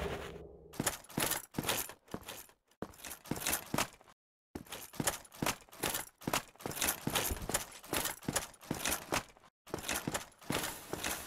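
Armoured footsteps tread steadily on stone.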